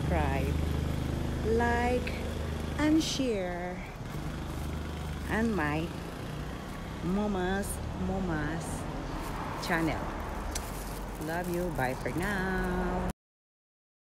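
A woman talks with animation close to the microphone.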